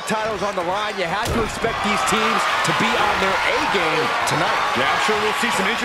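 Bodies slam heavily onto a wrestling ring mat.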